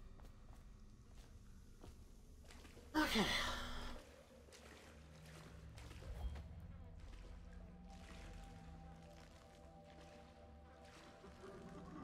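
Water sloshes as someone wades through it.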